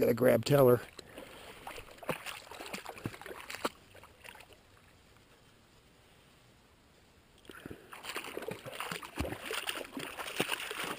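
A dog splashes through shallow water.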